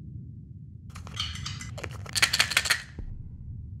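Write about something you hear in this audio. Glass bottles clink together.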